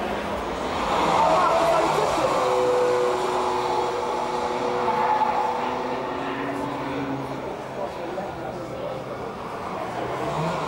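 A second car engine roars past close by.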